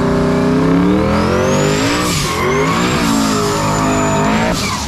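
Tyres screech as they spin on the pavement.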